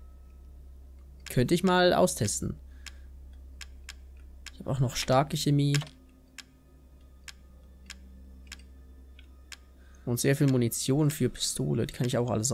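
Soft electronic menu clicks tick at a steady pace.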